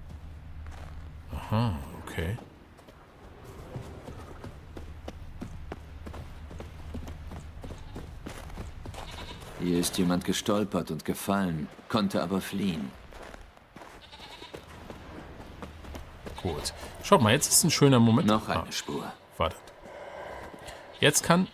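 Footsteps tread on grass and dirt.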